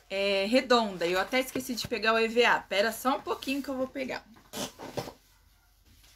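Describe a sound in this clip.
A woman talks close by, speaking directly and with animation.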